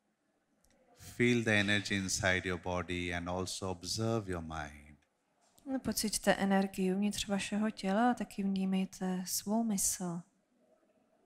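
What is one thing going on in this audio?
A woman speaks calmly through a microphone and loudspeakers in a large hall.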